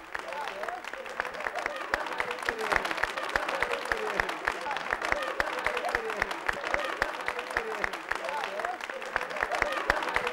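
A group of people clap their hands in a steady rhythm.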